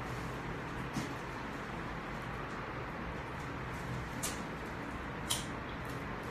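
A lighter clicks as it is flicked.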